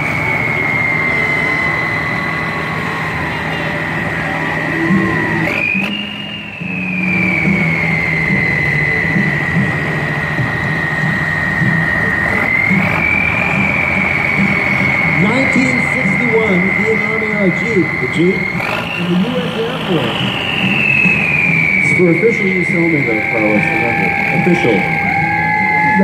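A large truck engine idles with a steady low rumble.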